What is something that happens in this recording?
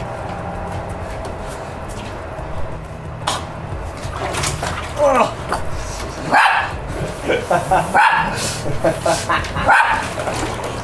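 A plastic bin creaks and thumps as a man climbs in.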